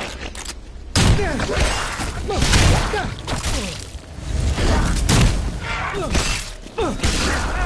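Heavy blows land with loud thuds in a fight, again and again.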